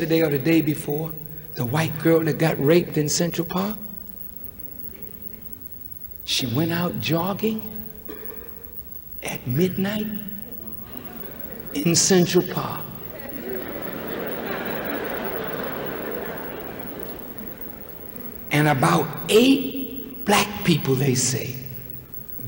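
A middle-aged man speaks forcefully into a microphone, heard through a loudspeaker, with long pauses between phrases.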